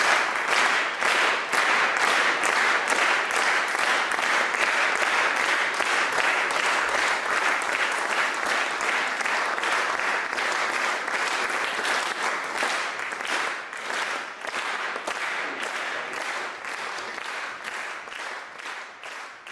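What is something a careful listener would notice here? An audience applauds loudly in a large echoing hall, then the clapping slowly fades.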